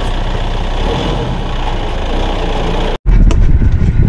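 A diesel utility tractor engine rumbles close by outdoors as the tractor drives.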